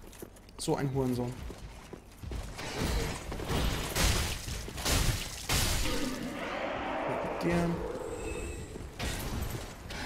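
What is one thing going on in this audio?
Heavy metal weapons clash and strike armor.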